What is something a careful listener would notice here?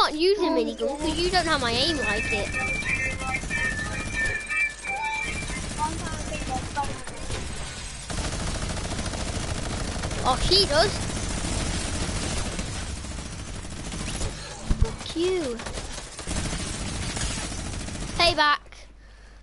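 Rapid gunfire crackles in a video game.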